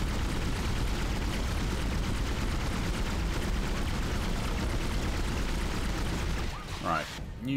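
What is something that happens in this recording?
A weapon fires rapid, crackling bursts.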